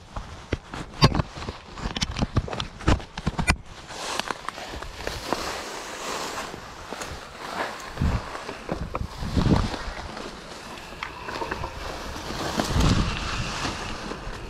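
A mountain bike rattles and clatters over a rough forest trail.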